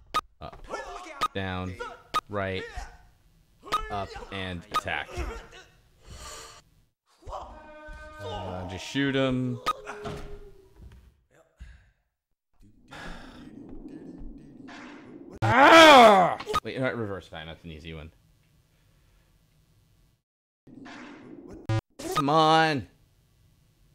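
A man talks into a microphone with animation, close up.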